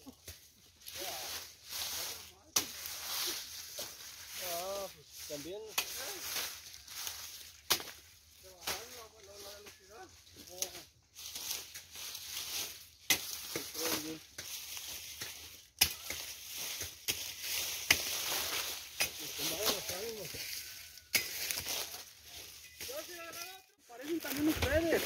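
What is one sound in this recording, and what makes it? Dry leaves crackle and rustle as a person moves through them.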